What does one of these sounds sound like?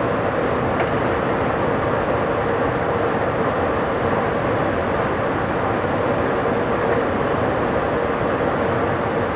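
Wind rushes past a moving train.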